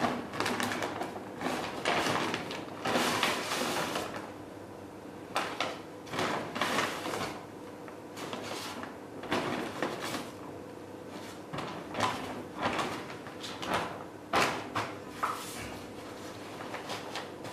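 Paper sacks rustle and crinkle as they are pulled out and handled.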